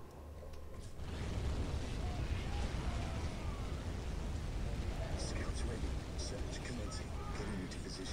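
Explosions rumble in a battle.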